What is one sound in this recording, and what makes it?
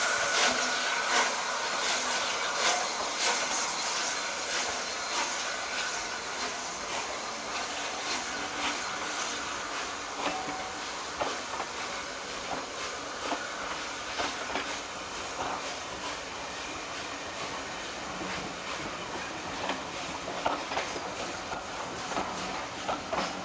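A steam locomotive chuffs heavily as it pulls away.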